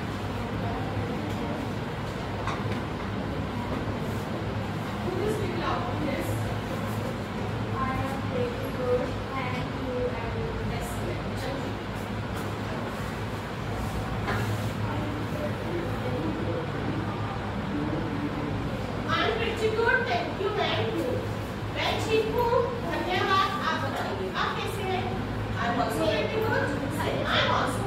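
A ceiling fan hums steadily.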